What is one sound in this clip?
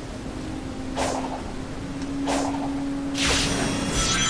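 A video game character dashes forward with sharp whooshing bursts.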